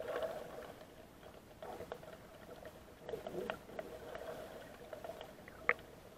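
Water swirls and murmurs, heard muffled from underwater.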